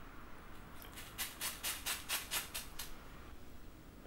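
Glitter rattles in a shaker and pours out in quick bursts.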